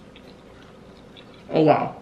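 A young man chews food.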